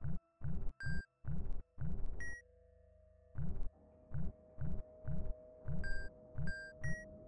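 Short electronic game thumps repeat in a quick rhythm.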